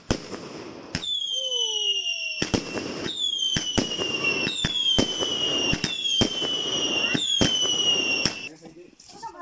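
Fireworks shriek with falling whistles.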